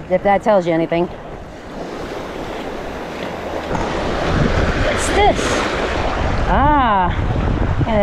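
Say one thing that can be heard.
Shallow water sloshes and splashes close by.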